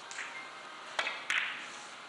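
A cue strikes a billiard ball.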